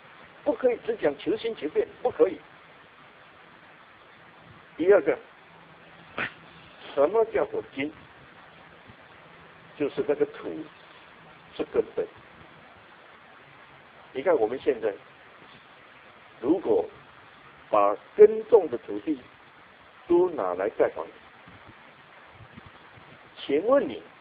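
An elderly man speaks calmly in short phrases, heard through a small loudspeaker.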